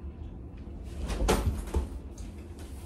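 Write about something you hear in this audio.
A person flops down onto a soft bed with a muffled thump.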